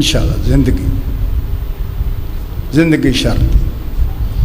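A middle-aged man recites loudly and with feeling into a microphone over a loudspeaker.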